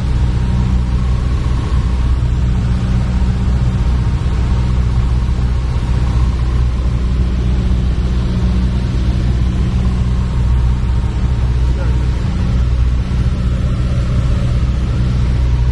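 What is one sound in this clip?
Wind rushes past the plane.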